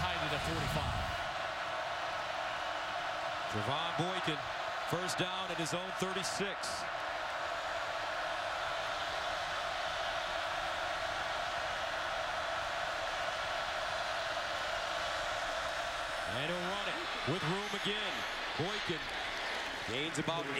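A large stadium crowd roars steadily outdoors.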